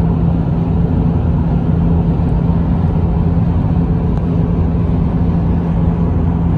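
A car drives fast, heard from inside with a steady low road rumble and engine hum.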